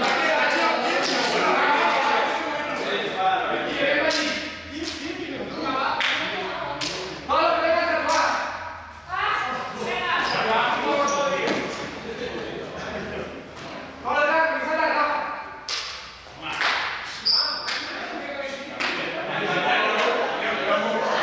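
Young men and women talk and call out all at once in a large echoing hall.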